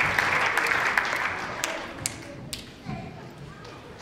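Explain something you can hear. An audience claps and cheers in a large echoing hall, then the applause dies away.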